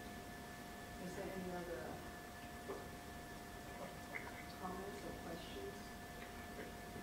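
A woman speaks quietly at a distance.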